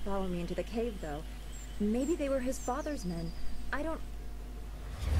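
A young woman speaks quietly and anxiously.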